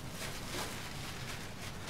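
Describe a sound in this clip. Bubble wrap rustles and crinkles in a man's hands.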